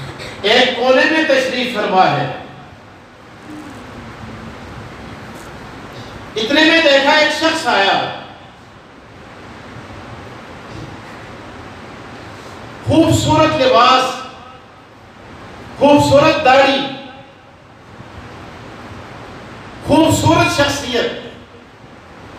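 A man preaches loudly and with passion through a microphone, in bursts with pauses between.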